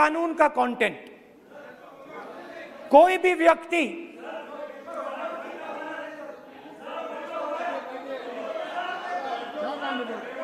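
A man speaks forcefully through a microphone in a large hall.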